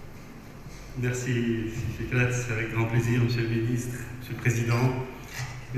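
A man speaks calmly into a microphone over a loudspeaker in a large hall.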